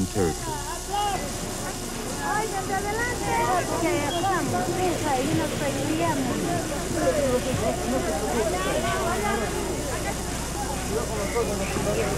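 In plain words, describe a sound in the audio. A large crowd of men and women chatters and calls out all at once.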